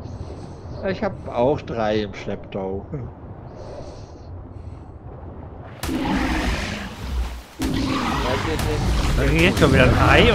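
An older man talks with animation close to a microphone.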